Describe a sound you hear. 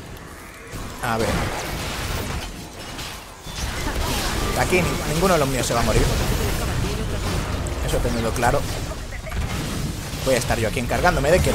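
Magic blasts and clashing weapons crackle in a busy battle.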